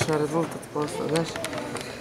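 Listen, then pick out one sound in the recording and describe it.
Young men's voices chatter and echo in a large hall.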